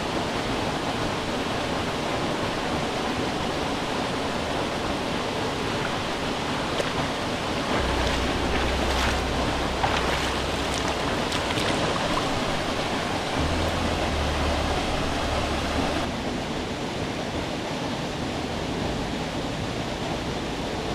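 A waterfall splashes steadily into a pool.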